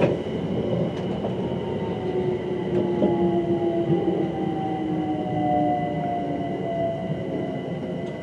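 A train's brakes squeal in a long, slowly falling whine.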